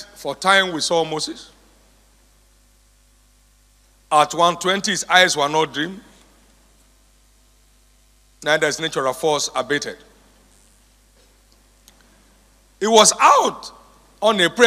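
A man speaks slowly and deliberately through a microphone, with long pauses between phrases.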